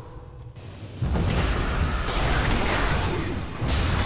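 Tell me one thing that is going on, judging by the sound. Magic blasts crackle and whoosh as game figures fight.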